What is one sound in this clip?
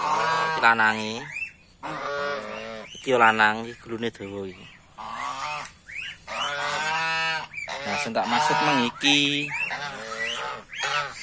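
Geese honk loudly close by, over and over.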